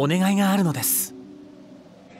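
A man speaks calmly and softly.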